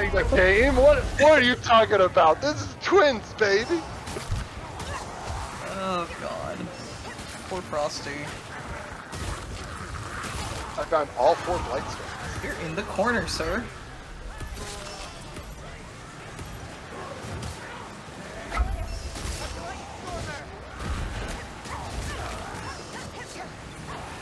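Weapons clash and slash in a game fight.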